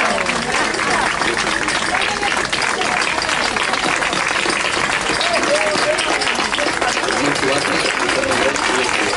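A crowd of people chatter all around outdoors.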